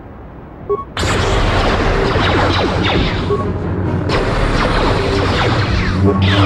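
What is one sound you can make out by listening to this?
Lightsabers hum and clash in a fast fight.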